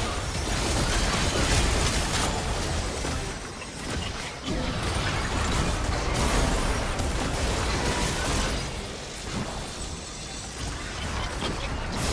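Spell effects whoosh and crackle during a fight.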